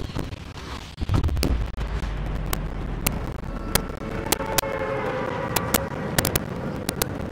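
Wind rushes loudly past a falling skydiver.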